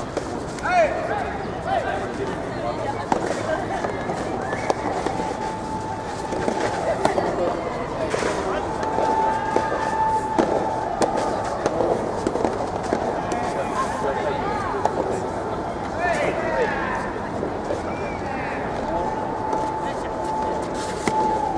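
Tennis balls are struck sharply with rackets outdoors.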